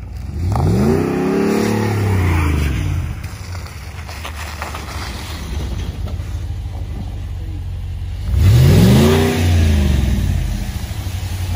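A pickup truck engine revs up and falls back, twice.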